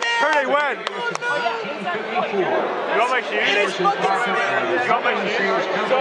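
A crowd cheers and chatters loudly in a large open stadium.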